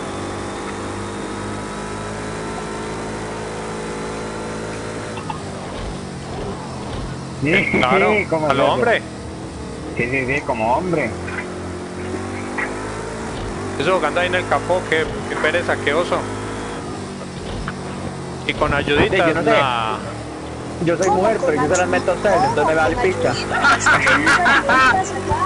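A race car engine revs and roars steadily.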